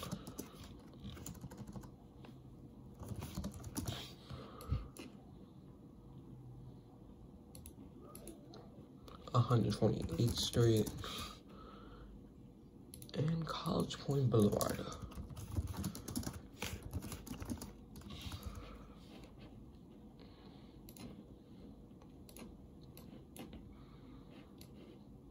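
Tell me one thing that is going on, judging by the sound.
Fingers tap and swipe on a touchscreen.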